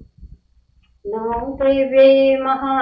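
A woman chants in a long, steady sung tone.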